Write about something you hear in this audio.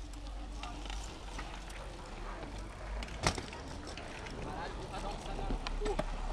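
Bicycle tyres roll over concrete.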